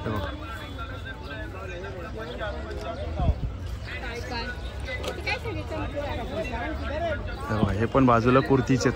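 Many men and women chatter and call out nearby in a busy outdoor crowd.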